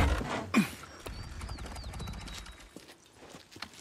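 A motorcycle engine rumbles at idle.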